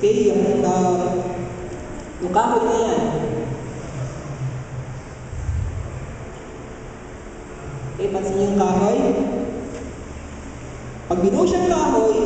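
A young man sings slowly through a microphone.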